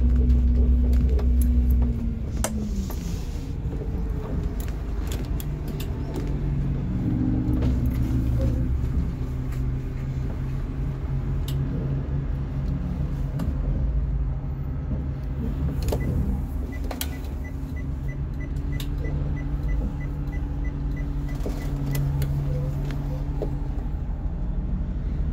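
A vehicle's body rattles and clunks over the road.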